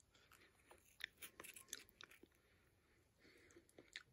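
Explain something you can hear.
A crisp chip scrapes and crackles as it dips into chunky salsa.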